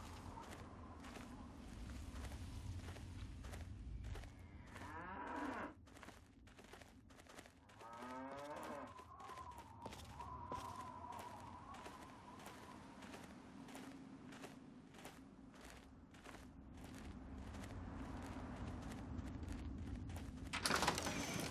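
Footsteps crunch steadily on dry gravelly ground.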